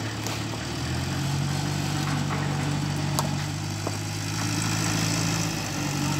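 Stones clack together as they are set in place.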